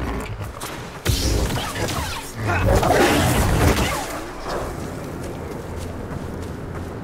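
A laser sword hums and clashes with loud metallic crackles.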